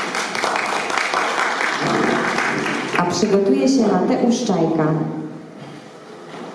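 A young woman reads aloud through a microphone.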